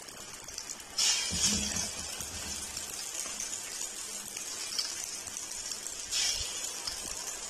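Food drops into hot oil with a sharp hiss.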